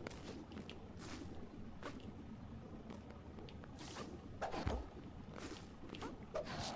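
Quick whooshing sound effects play as a small game character dashes and jumps.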